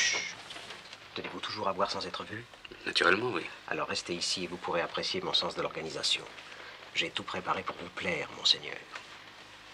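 An elderly man answers quietly close by.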